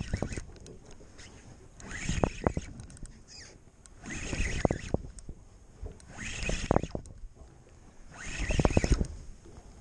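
A fishing reel whirs and clicks in short bursts of cranking.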